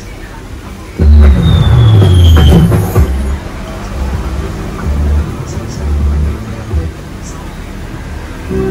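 A loudspeaker plays loud music with deep booming bass.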